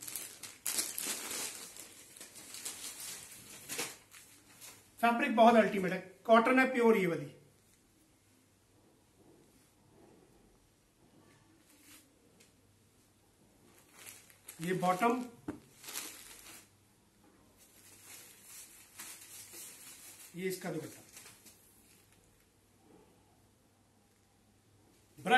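Cloth rustles as fabric is unfolded and handled.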